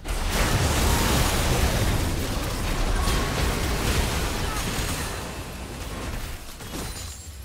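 Video game spell effects crash and explode in a busy battle, growing quieter toward the end.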